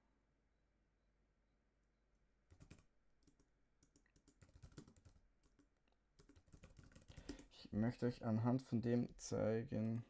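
Keys clatter as a man types.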